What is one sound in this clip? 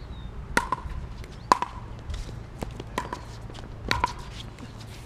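Tennis balls are struck with rackets, each hit a sharp pop.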